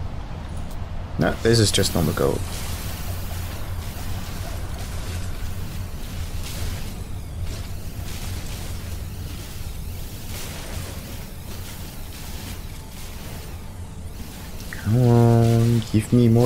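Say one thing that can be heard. A mining laser hums steadily.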